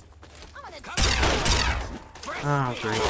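A heavy gun fires in a loud, rough burst.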